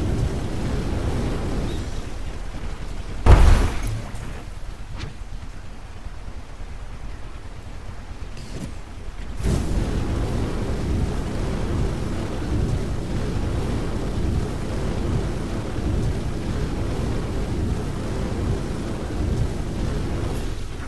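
Heavy mechanical footsteps stomp and clank at a steady pace.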